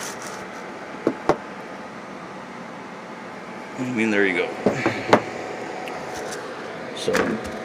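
An aluminium can knocks against a hard surface.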